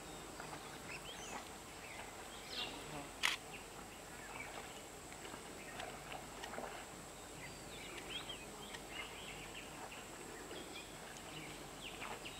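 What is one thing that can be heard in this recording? A small bird chirps nearby.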